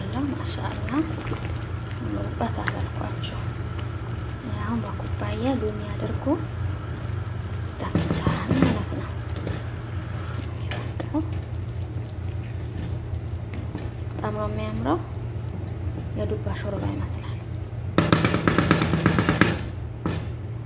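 A wooden spatula scrapes and knocks against a metal pot while stirring.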